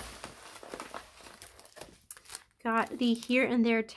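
Stiff plastic packaging crackles in hands.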